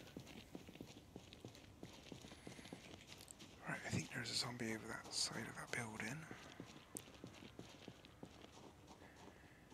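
Footsteps tap steadily on hard pavement.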